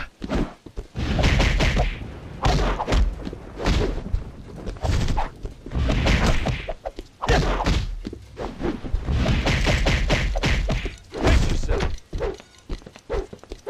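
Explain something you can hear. Punches and kicks land with heavy thuds, over and over.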